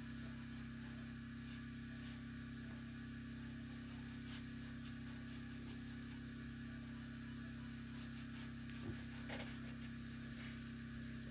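A metal tool scrapes and taps inside a stove's firebox.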